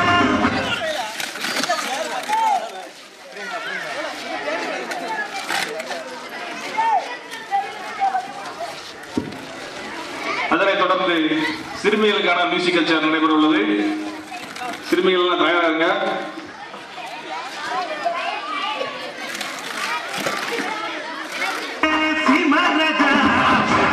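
Children shout and chatter excitedly outdoors.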